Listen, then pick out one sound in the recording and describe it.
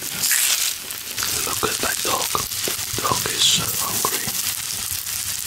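A man chews food wetly close to a microphone.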